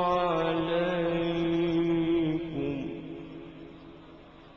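A man chants in a long, melodic voice through a microphone, with echo trailing off.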